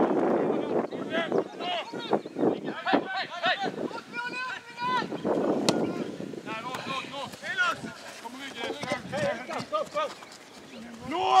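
Men shout to each other across an open field outdoors.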